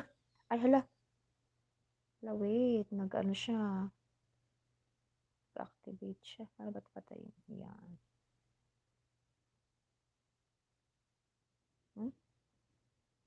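A young woman speaks calmly and close to a microphone, in short bursts with pauses.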